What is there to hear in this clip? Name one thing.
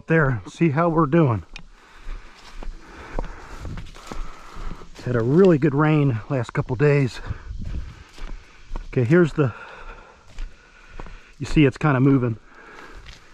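A man talks with animation close by, in short bursts.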